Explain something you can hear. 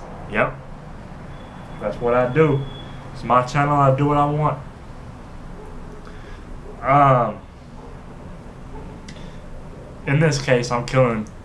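A young man speaks close by in short, lively bursts, pausing between phrases.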